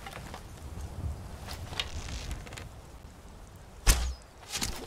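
A bowstring is drawn back and creaks.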